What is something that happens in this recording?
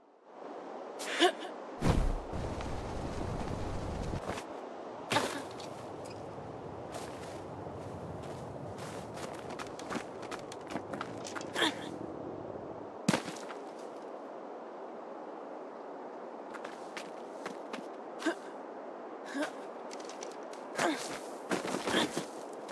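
Footsteps crunch on snow and thud on wooden planks.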